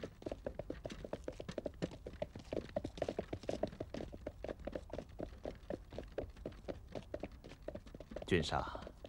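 Horse hooves clop steadily on hard ground.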